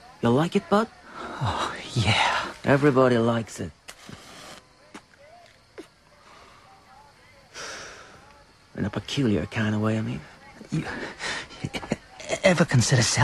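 A voice talks with animation through a small radio loudspeaker.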